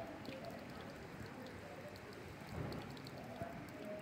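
Thin streams of water trickle into a shallow pool.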